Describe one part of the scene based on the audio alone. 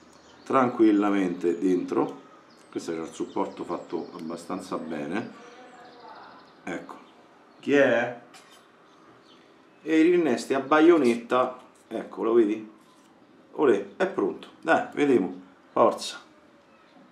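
A young man talks calmly and close to the microphone.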